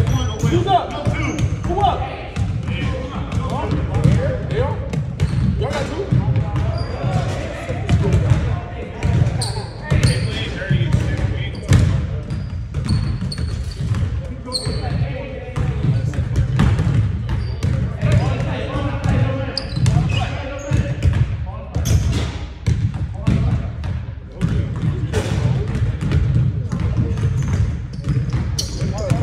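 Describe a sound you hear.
Young men talk and call out across the gym.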